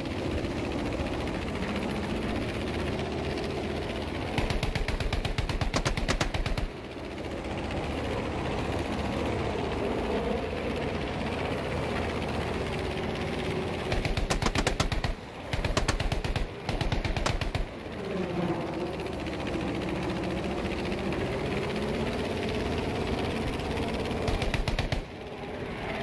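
A propeller plane's engine drones steadily with a rising and falling pitch.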